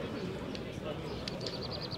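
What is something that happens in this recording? Hands slap together in a high five.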